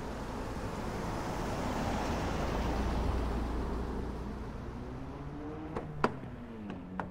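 A car drives past with its engine roaring and then slows.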